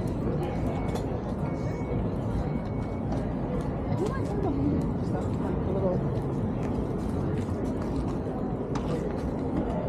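Footsteps tap on pavement as people walk past.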